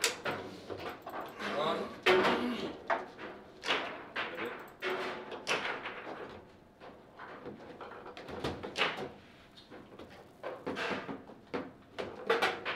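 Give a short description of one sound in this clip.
A ball cracks against the walls and figures of a foosball table.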